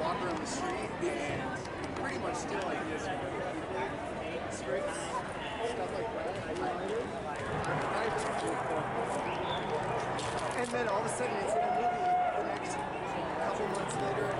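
A crowd of people chatters outdoors on a busy street.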